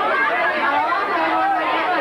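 A young woman speaks into a microphone.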